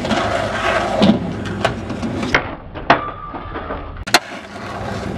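A skateboard clacks sharply as it lands and hits the ground.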